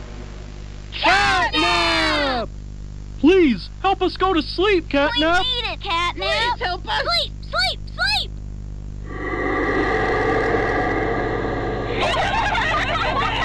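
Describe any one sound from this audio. Cartoon characters laugh in high, squeaky voices.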